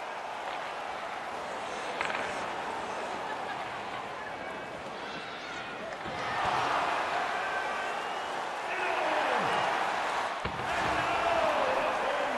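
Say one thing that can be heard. A large crowd roars and cheers in an echoing arena, swelling louder at times.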